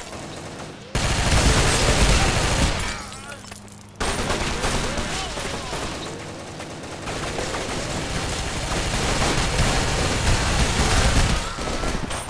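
Rapid bursts of rifle fire crack out.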